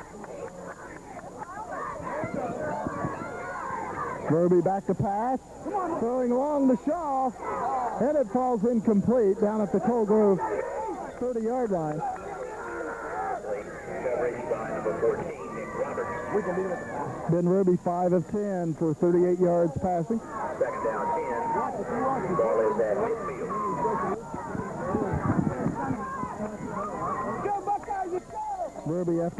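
A crowd cheers and shouts from the stands outdoors.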